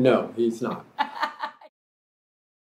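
A woman laughs.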